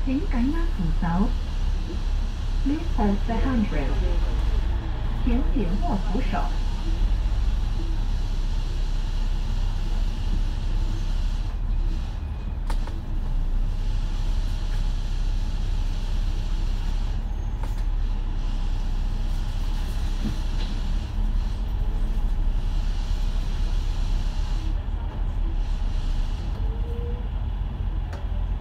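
Traffic hums around a busy street.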